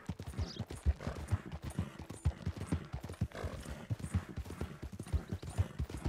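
A horse's hooves thud rhythmically on a dirt trail.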